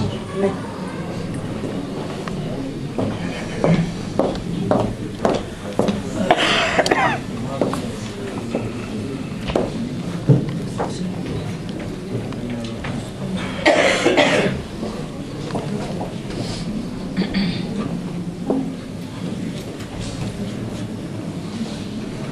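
A woman reads out into a microphone, heard through a loudspeaker in an echoing hall.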